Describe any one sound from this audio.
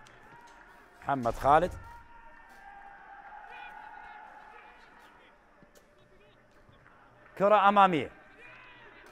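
A young man shouts loudly outdoors.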